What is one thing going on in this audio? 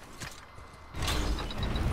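A metal crank clanks and grinds as it turns.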